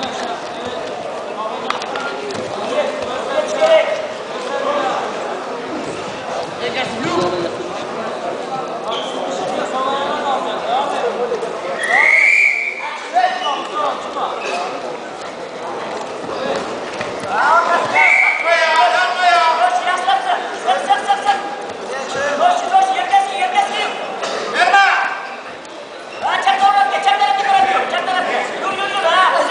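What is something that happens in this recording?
A crowd chatters and shouts in a large echoing hall.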